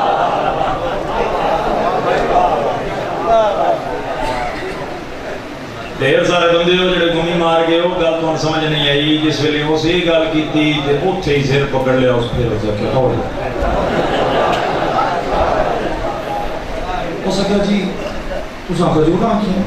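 A young man recites with passion into a microphone, heard through loudspeakers.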